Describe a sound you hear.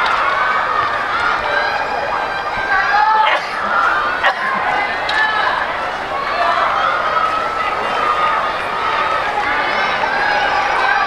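A small crowd of spectators cheers and shouts outdoors.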